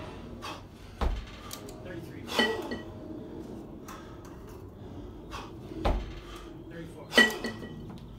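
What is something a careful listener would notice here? Metal kettlebells clank together with a ringing sound.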